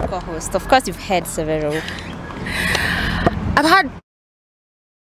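A young woman speaks with animation into microphones close by.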